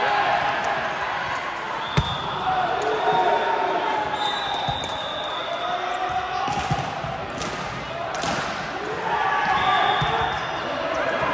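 Young women call out to each other.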